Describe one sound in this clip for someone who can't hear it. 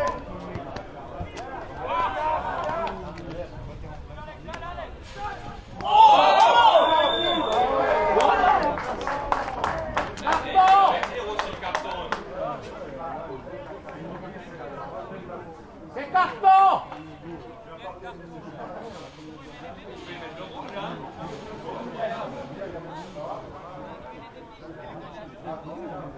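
Young players shout and call out across an outdoor field.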